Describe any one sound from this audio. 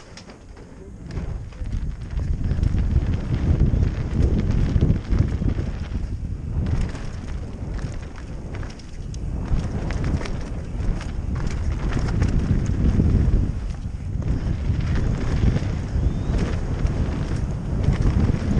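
Wind rushes loudly past the rider.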